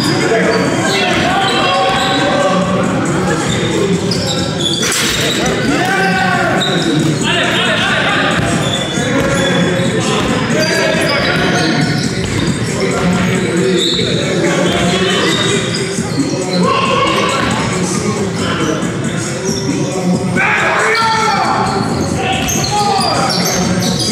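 Young men call out to each other at a distance.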